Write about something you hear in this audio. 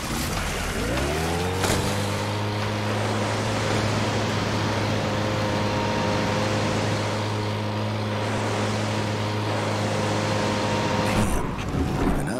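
A boat motor starts, revs up and drones steadily.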